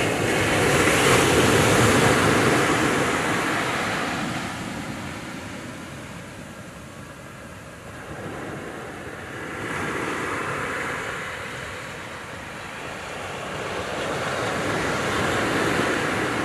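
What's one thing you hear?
Waves break and wash onto the shore, swelling and easing.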